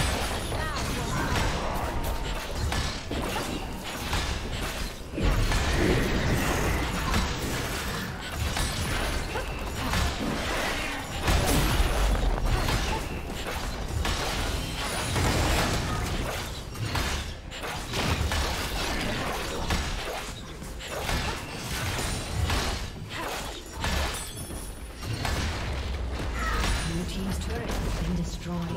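Video game spell effects and attacks crackle and boom.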